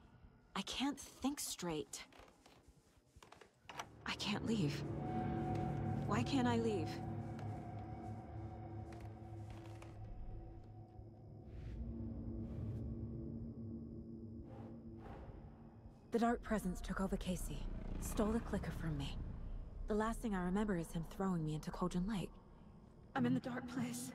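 A young woman speaks quietly and anxiously, close by.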